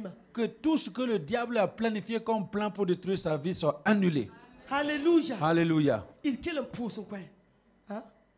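A middle-aged man speaks with animation through a microphone in an echoing hall.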